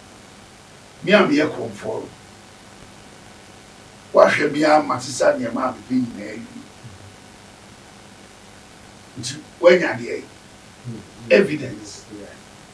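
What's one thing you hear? An elderly man speaks with animation close to a microphone, in short bursts.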